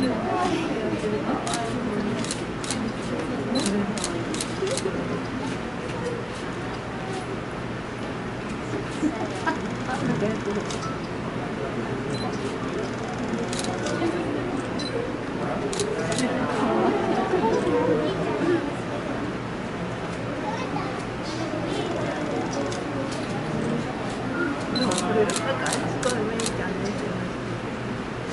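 Water splashes and laps as a sea otter moves in a pool.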